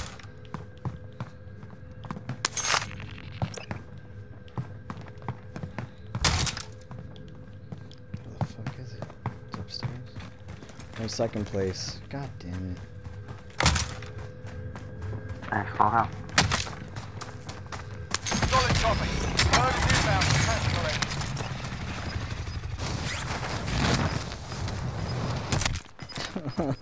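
Footsteps tap quickly on a hard floor.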